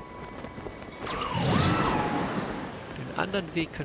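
Wind rushes past loudly as a figure glides through the air.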